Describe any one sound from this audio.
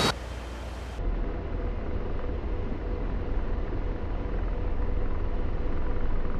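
A jet engine hums low and muffled from inside a cockpit.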